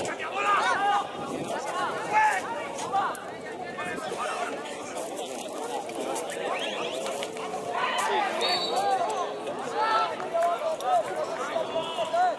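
Young men shout to each other across an open football pitch, heard from a distance.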